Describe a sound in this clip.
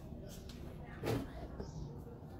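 A plastic jug knocks lightly against a tray.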